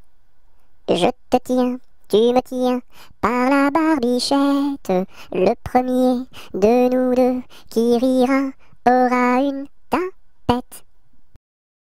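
A young woman speaks clearly and cheerfully, close to a microphone.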